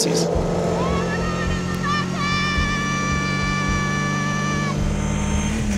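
A woman shouts and sings out joyfully nearby.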